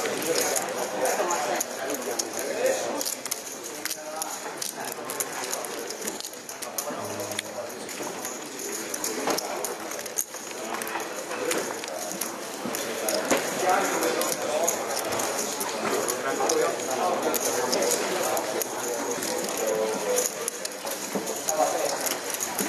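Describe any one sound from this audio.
A crowd murmurs in the background of a large room.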